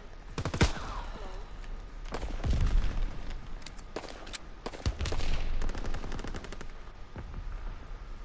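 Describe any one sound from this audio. Gunshots crack and echo in short bursts.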